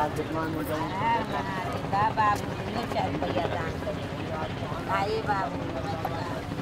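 Young men talk casually nearby outdoors.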